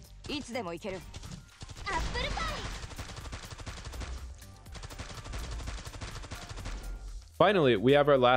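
Weapons clash and zap in a rapid electronic battle.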